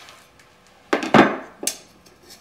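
A hand press clunks as its lever is pulled down.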